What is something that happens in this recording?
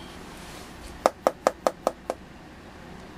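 A rotary switch clicks several times in quick succession.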